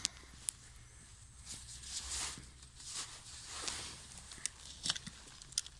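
A gloved hand scrapes and brushes loose soil.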